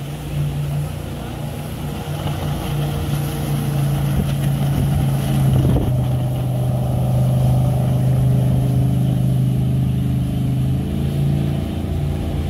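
A jet boat engine roars steadily nearby.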